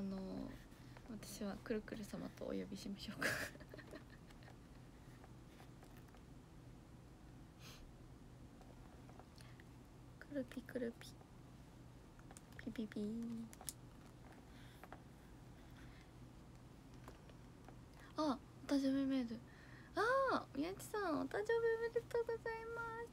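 A young woman speaks softly and cheerfully close to the microphone.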